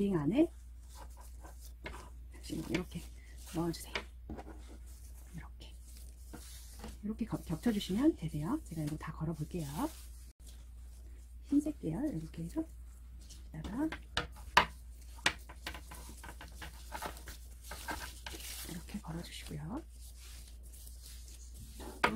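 Satin ribbons rustle and slide softly.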